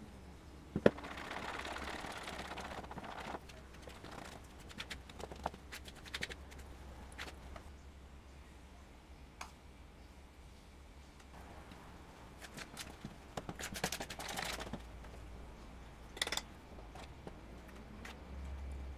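Fingers rub and crumble flour in a bowl.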